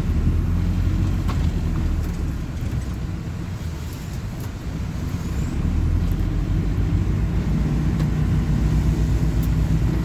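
A bus engine rumbles low and steady, rising and falling as the bus drives.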